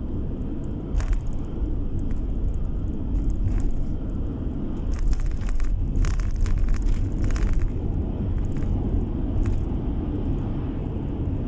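A car's engine and tyres drone steadily on a road.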